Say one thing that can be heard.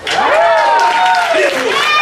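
A trumpet plays a melody.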